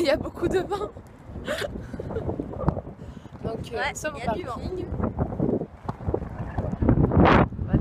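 A young woman talks cheerfully and laughs close to the microphone.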